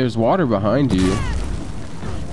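Fire bursts and roars.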